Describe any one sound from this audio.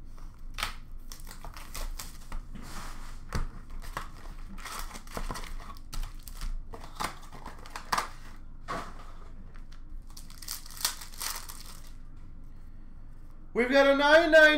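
Plastic card packs rustle and click as a hand sorts through them.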